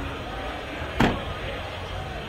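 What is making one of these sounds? A vehicle door slams shut nearby.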